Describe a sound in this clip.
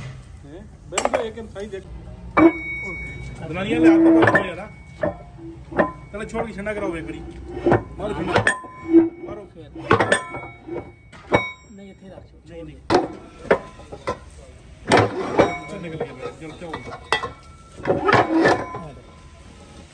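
Heavy metal parts knock and clank together.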